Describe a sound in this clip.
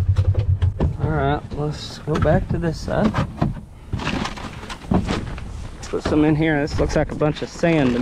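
A paper feed sack rustles and crinkles.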